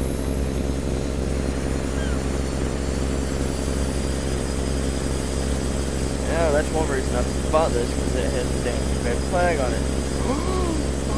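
A pickup truck engine hums steadily as it drives along.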